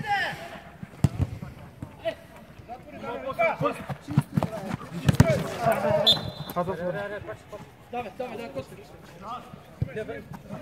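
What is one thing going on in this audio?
Several men shout and call out across an open outdoor pitch.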